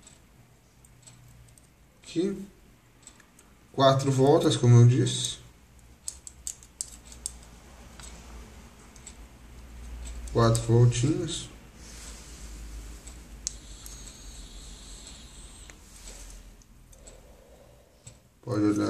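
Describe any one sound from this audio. Small metal parts click and scrape faintly.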